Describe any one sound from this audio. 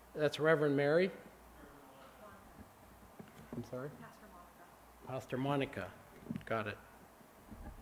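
An elderly man speaks calmly into a microphone, with pauses between short phrases.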